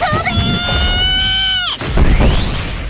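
A high, ringing energy blast screeches.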